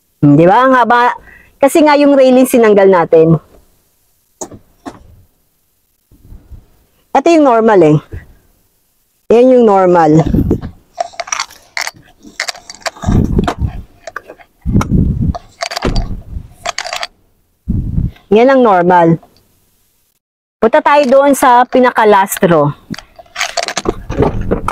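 A woman speaks close to a microphone with animation.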